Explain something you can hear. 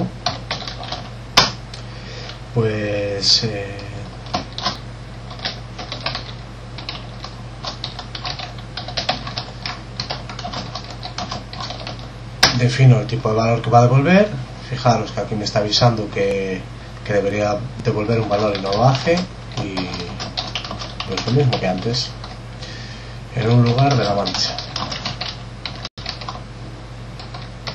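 Keys click on a keyboard as someone types.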